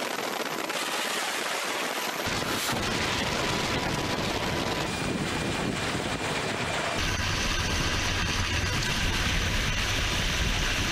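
A helicopter's rotor thumps and roars loudly overhead.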